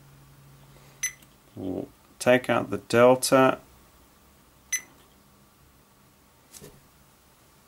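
A multimeter's buttons click as they are pressed.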